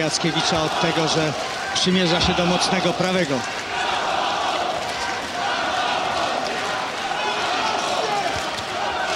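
A large crowd roars and cheers steadily.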